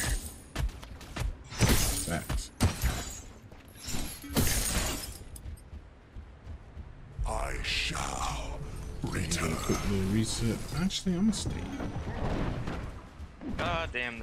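Heavy metal footsteps stomp along at a run.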